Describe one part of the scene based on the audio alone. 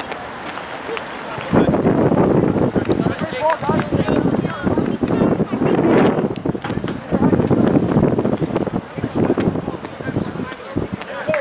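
Players shout and call to each other across an open field in the distance.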